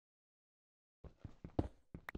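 A pick chips at stone with quick knocks.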